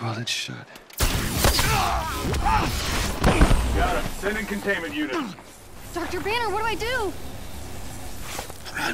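Electric energy crackles and buzzes.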